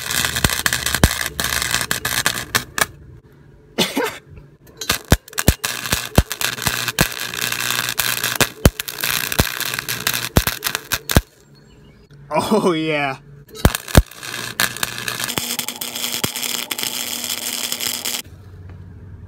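A welding torch crackles and sizzles in loud bursts.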